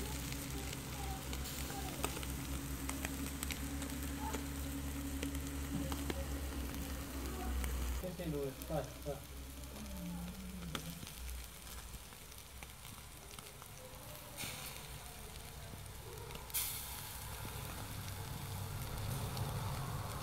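Fish sizzle and crackle softly on a grill over hot coals.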